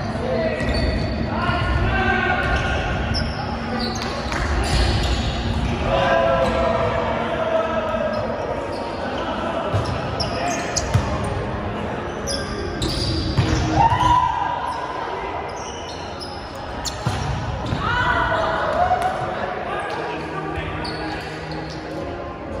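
Young men call out and shout to each other in a large echoing gym.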